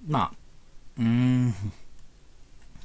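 A man makes a long drawn-out appreciative hum.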